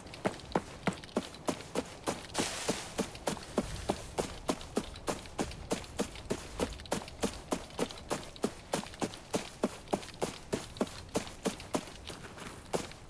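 Footsteps tramp quickly and steadily through grass and undergrowth.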